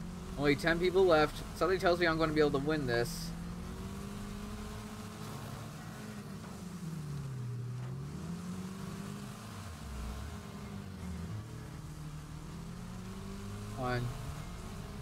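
A car engine drones and changes pitch as a car races.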